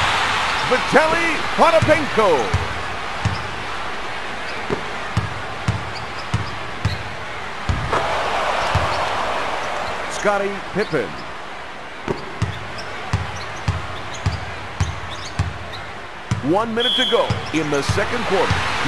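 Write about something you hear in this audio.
An arena crowd murmurs and cheers.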